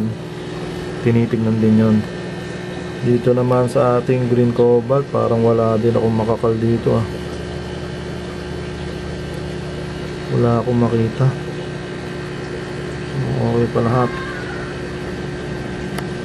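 Air bubbles gurgle softly and steadily in water.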